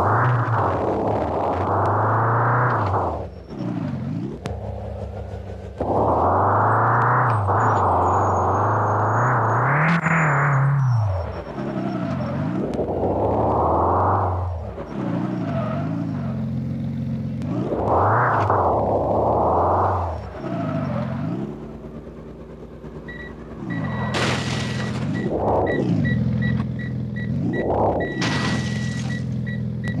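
A car engine revs up and down repeatedly, roaring loudly and then dropping to idle.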